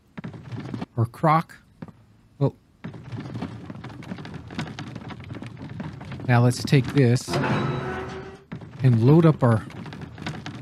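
An older man talks with animation into a close microphone.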